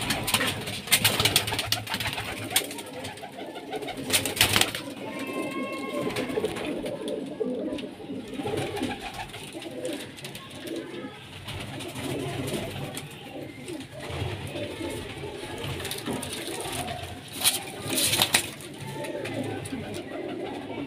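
Pigeons coo in low, throaty murmurs close by.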